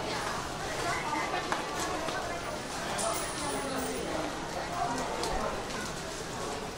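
A crowd of people murmurs and chatters in an echoing hall.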